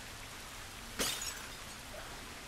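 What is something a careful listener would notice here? A thrown bottle shatters on a hard floor.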